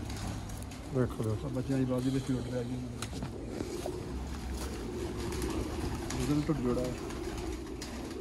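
Another man talks quietly a little farther off.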